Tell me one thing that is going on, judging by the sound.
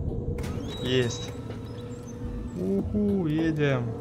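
A small mine cart rolls along rails.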